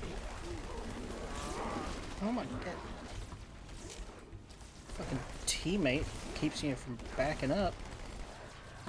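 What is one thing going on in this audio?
Creatures roar and snarl.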